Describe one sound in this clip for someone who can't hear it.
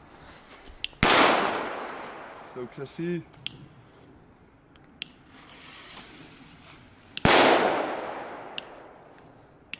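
Firecrackers bang loudly outdoors, each blast echoing and fading away.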